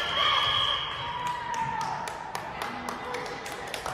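Young women shout and cheer in a large echoing gym.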